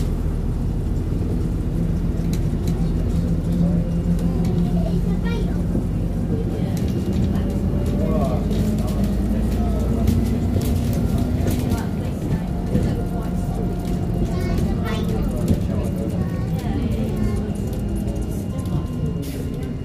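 Loose fittings rattle and click inside the moving bus.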